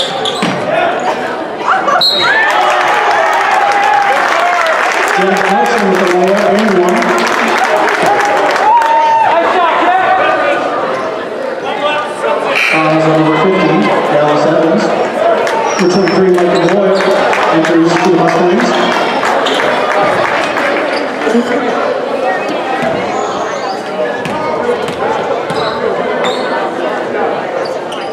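A crowd talks and cheers in a large echoing gym.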